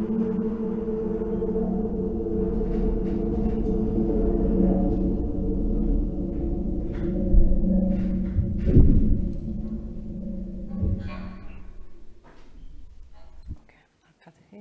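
Music plays through loudspeakers in a large hall.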